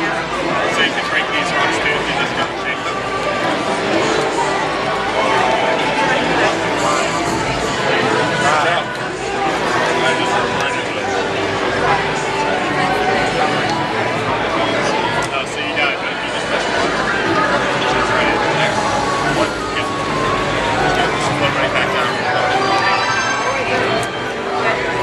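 Upbeat game music plays loudly through loudspeakers.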